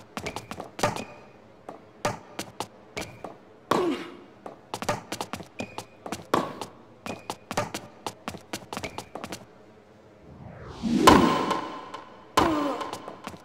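A tennis ball is struck by rackets and bounces on a hard court in a quick rally.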